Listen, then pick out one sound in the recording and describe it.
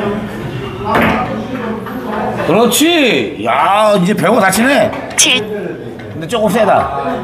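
Billiard balls click against each other.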